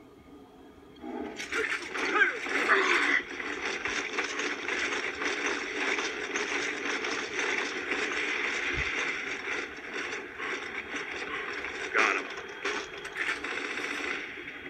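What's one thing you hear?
Gunfire and battle noise from a video game rattle steadily.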